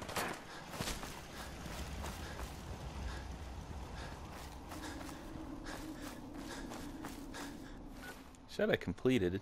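Footsteps crunch over dry ground.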